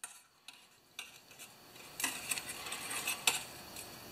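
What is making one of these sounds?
Metal rods scrape and clink together.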